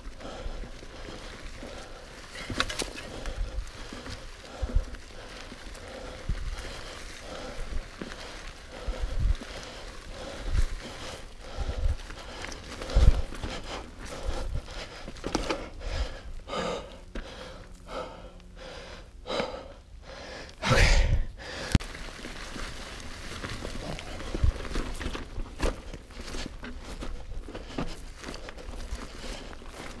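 A bicycle rattles and thumps over rocks and roots.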